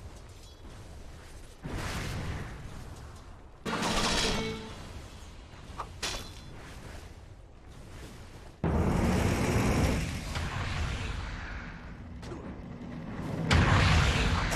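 Magic blasts and whooshes burst out in a fight.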